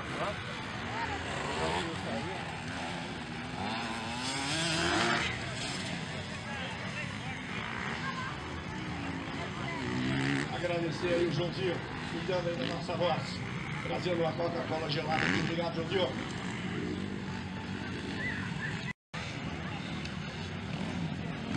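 Motorcycle engines rev and roar as dirt bikes race.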